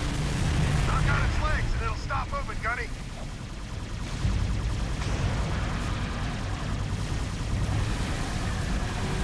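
Laser blasts crackle and boom.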